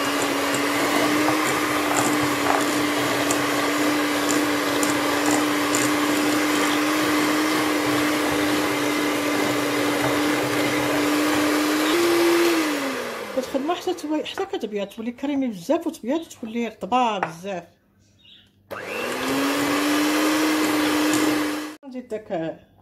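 An electric hand mixer whirs steadily as it beats a mixture in a bowl.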